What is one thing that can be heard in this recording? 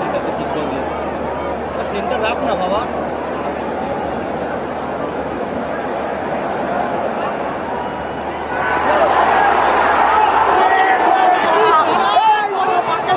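A large stadium crowd roars and chants steadily in a wide open space, swelling louder partway through.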